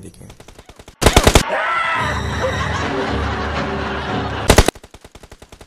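A man cries out in shock.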